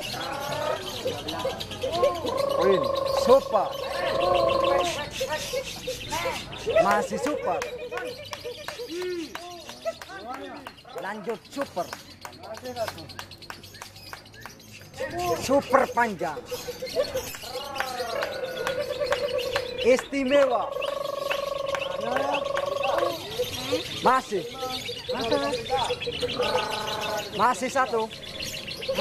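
A small bird chirps and trills rapidly, close by.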